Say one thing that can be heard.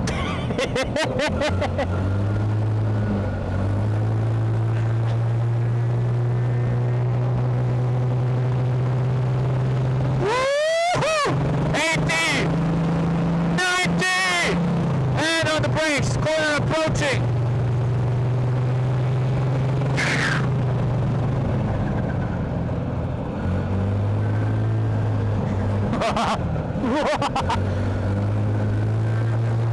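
Tyres hum on an asphalt road.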